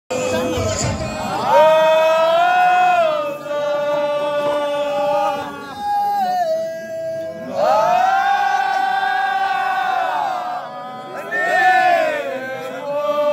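A group of young men chant together in long, drawn-out tones.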